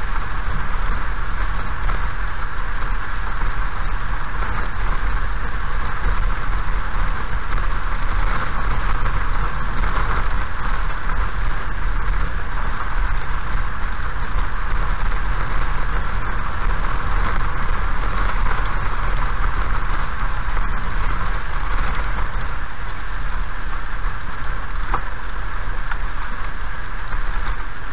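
A car rumbles steadily along a rough road.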